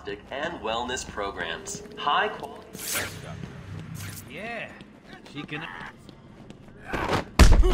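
Heavy footsteps run across a hard floor.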